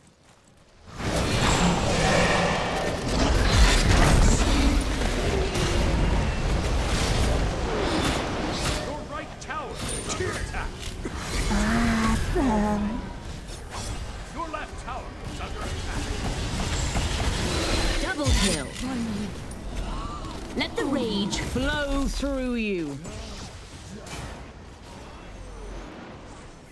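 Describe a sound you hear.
Magic blasts whoosh and crackle in a video game fight.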